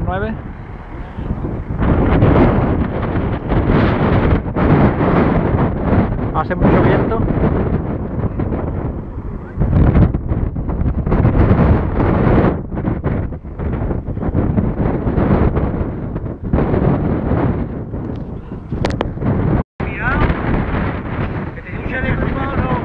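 Wind gusts into the microphone outdoors.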